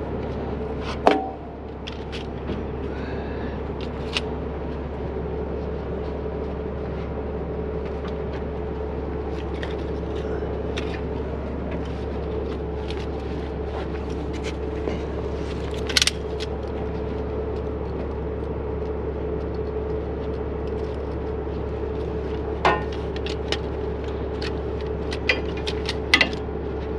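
Heavy metal parts clank and knock.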